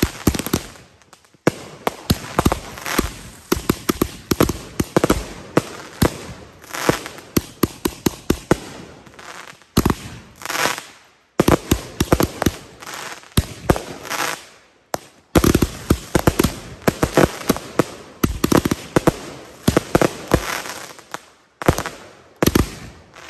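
Fireworks crackle and bang in rapid bursts.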